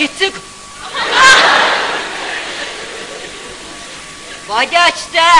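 An audience bursts into laughter and applause, then it fades.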